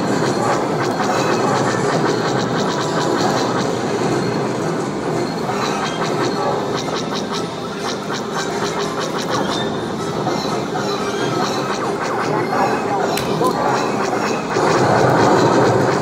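Loud electronic game music plays through loudspeakers in a noisy arcade.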